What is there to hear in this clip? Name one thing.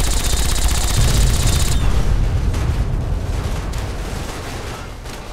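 A loud explosion booms and rumbles, then slowly fades.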